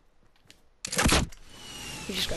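A rocket launcher fires.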